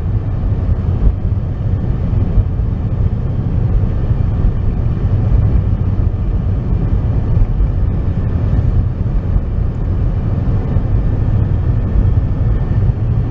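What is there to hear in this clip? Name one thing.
Tyres roll on the road with a steady hum.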